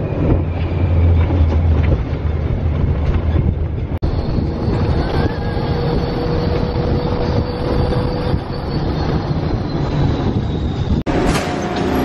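Wind rushes loudly past an open ride vehicle.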